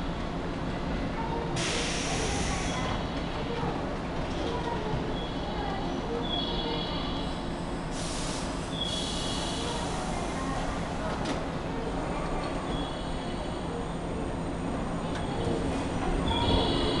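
An electric train hums steadily.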